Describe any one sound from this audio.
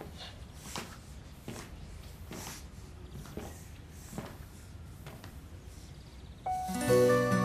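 Footsteps approach slowly on a hard floor.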